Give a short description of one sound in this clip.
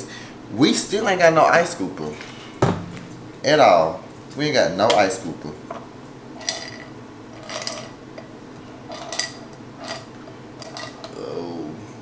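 A young man talks animatedly close by.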